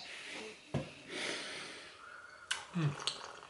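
A young woman slurps a drink from a mug.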